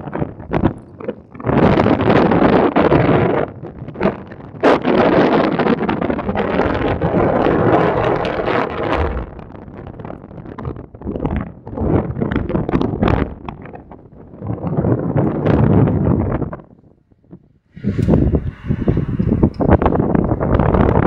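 Strong wind rushes and buffets loudly in gusts.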